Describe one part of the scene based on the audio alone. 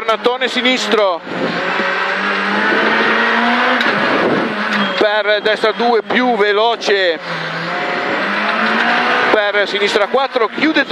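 A car engine roars loudly at high revs.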